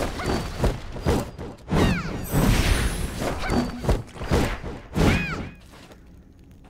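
Blades clash and slash with sharp metallic impacts.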